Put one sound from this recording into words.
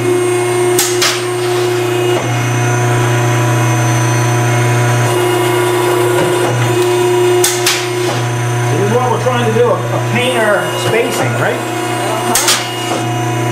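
A metal plate clanks against a machine.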